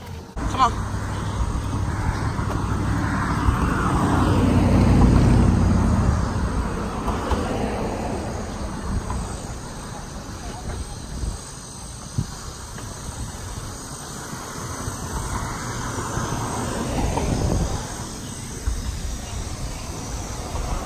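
Footsteps walk along a concrete path.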